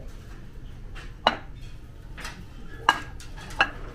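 A ceramic plate clinks down onto a hard table.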